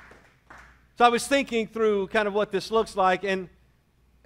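A man speaks calmly into a microphone in a large echoing room.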